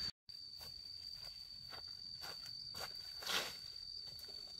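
Cut branches drop onto grass with a soft rustle.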